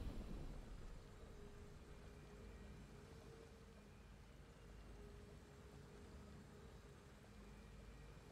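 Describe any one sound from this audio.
Soft, triumphant game music plays with long held notes.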